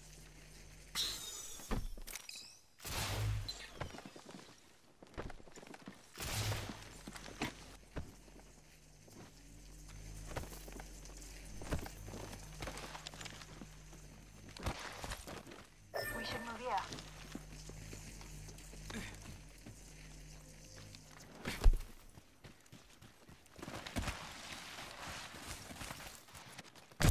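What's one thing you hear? Quick footsteps run over dirt and gravel.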